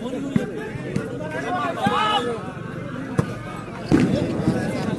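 A ball is struck with sharp thuds.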